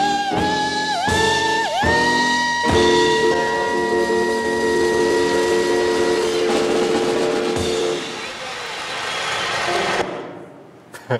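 Recorded music plays loudly through loudspeakers in a large hall.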